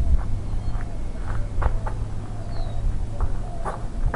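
Footsteps crunch on gravel nearby.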